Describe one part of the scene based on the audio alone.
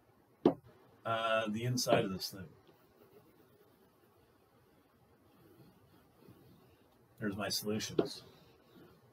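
A man speaks calmly and close by, in short phrases.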